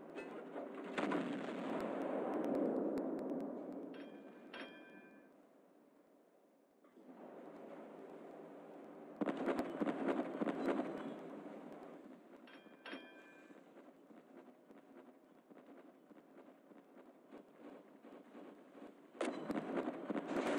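Naval guns fire with heavy booms.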